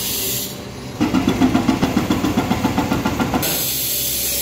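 An excavator pounds rapidly and loudly at concrete.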